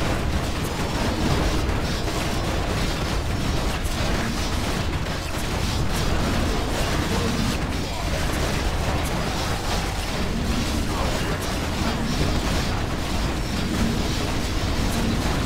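A bolt of magic crashes down with a loud blast.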